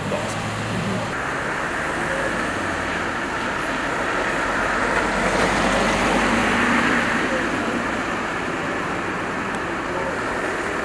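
A fire engine's motor runs steadily nearby.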